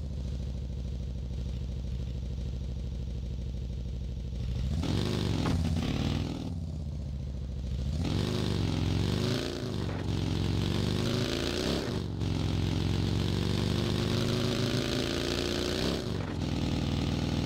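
A buggy engine hums and revs, rising and falling in pitch.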